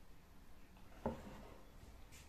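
A glass is set down with a knock.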